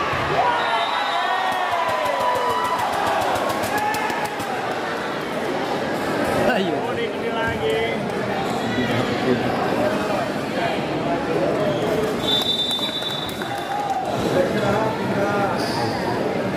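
A large crowd cheers and shouts in an echoing indoor hall.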